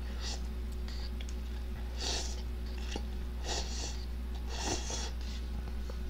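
A young man slurps noodles loudly, close to a microphone.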